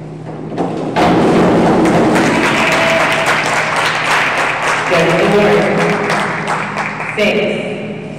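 Spectators cheer and clap, echoing around the hall.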